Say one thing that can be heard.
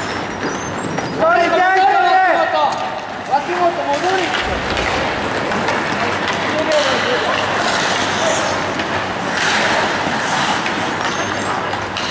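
Ice skates scrape and hiss across a rink.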